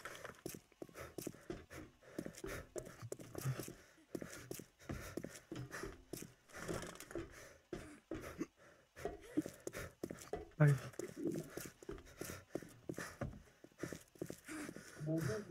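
Footsteps tread on hard floors at a steady walk.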